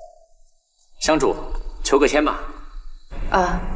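A young man speaks politely, close by.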